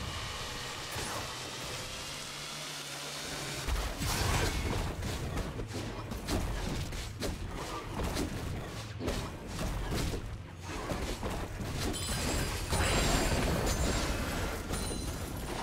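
Game spell and sword-hit effects clash and thud in quick bursts.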